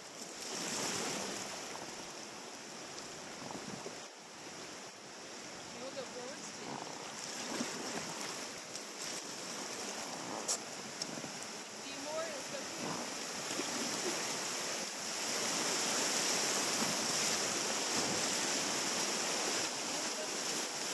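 River water rushes and splashes around a raft, growing louder over rapids.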